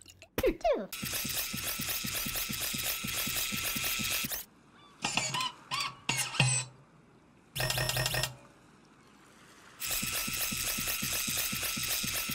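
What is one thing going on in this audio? A small toy vehicle whirs and rattles as it drives along.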